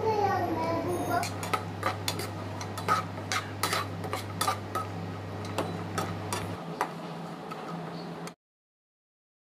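A metal spatula scrapes and clinks against a frying pan.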